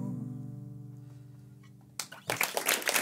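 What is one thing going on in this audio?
An acoustic guitar chord rings out and slowly fades.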